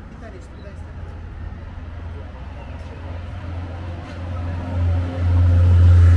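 Traffic hums steadily along a city street.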